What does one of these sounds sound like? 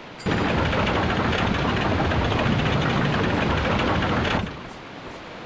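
Water rushes loudly.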